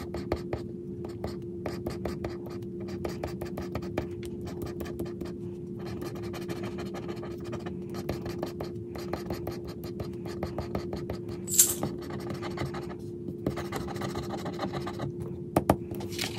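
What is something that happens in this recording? A plastic scraper scratches rapidly across a scratch card.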